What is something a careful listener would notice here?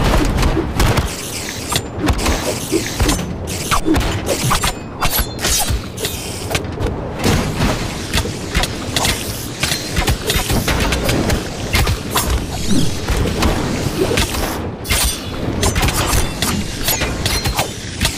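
Swords clash and clang in a fast fight.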